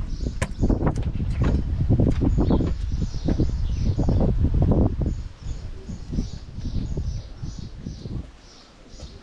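A child's footsteps shuffle on stone in a narrow passage.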